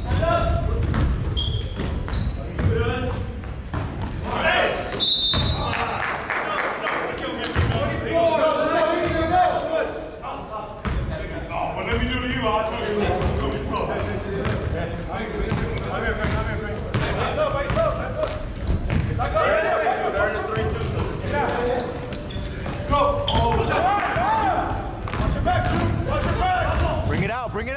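Young men shout and call out to each other across the court.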